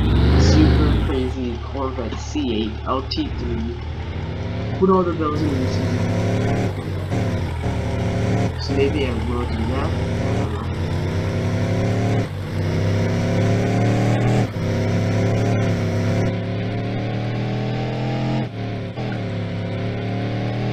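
A sports car engine revs up hard, rising in pitch and dropping at each gear change.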